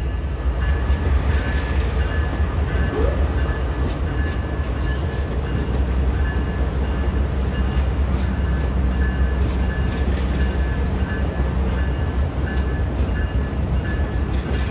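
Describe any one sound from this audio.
A locomotive rolls slowly along the rails.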